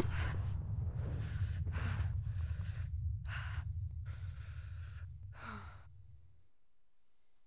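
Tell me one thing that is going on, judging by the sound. Wind roars in strong gusts.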